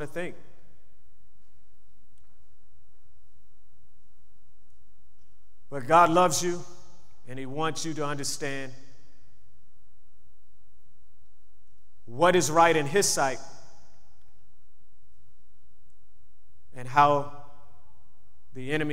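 A man speaks slowly into a microphone, with long pauses between phrases.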